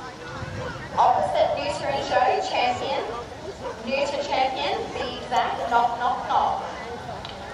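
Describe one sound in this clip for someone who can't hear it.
A woman talks calmly nearby.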